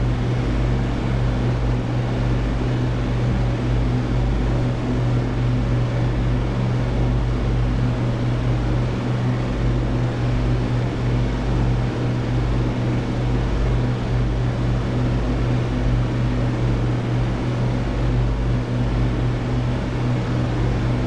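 An aircraft engine drones steadily and low.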